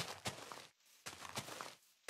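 A game's grass block breaks with a short rustling crunch.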